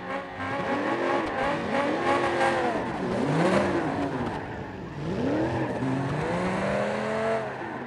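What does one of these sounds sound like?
A car engine revs up and down as the car speeds around.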